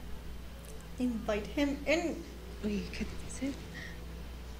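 A young woman speaks excitedly close to a microphone.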